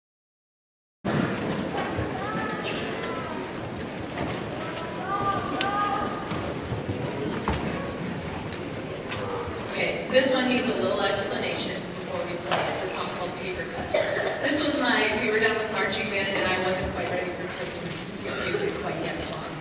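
A young woman speaks calmly through a loudspeaker in a large echoing hall.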